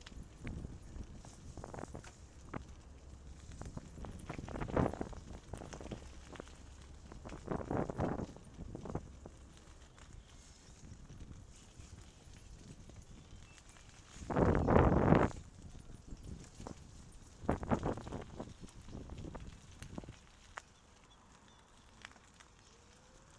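Bicycle tyres crunch and rattle over a gravel path.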